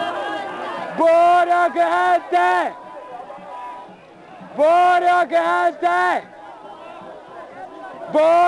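A large crowd of men and women chants loudly in unison, in short rhythmic bursts, outdoors.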